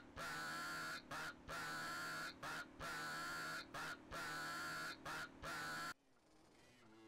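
A police siren blares in short, repeated bursts.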